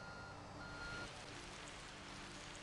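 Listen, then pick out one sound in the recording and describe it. Sand pours out of a tipping truck bed with a rushing hiss.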